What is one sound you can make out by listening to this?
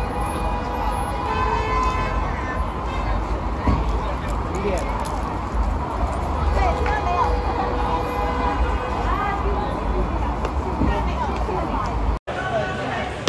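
Traffic rumbles steadily nearby.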